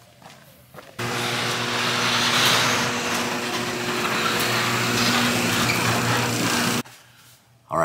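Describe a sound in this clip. A garage door rumbles and whirs as it opens.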